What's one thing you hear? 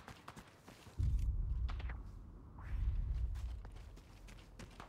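A rifle fires with a deep boom.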